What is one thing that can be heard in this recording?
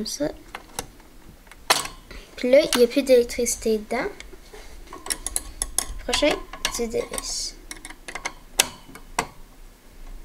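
A screwdriver clicks and taps against metal parts.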